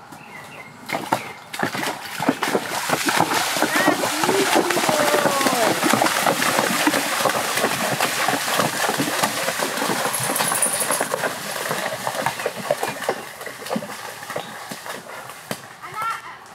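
Horses walk and splash through shallow water.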